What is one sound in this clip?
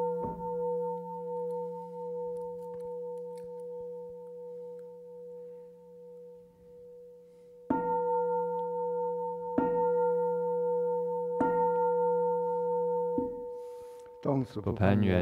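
A singing bowl is struck and rings out, slowly fading.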